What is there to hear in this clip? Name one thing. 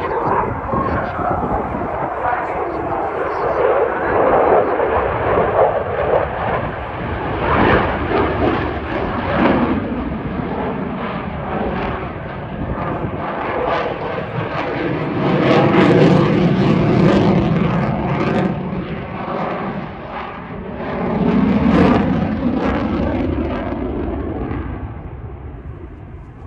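A jet engine roars loudly overhead, rising and falling as the aircraft turns.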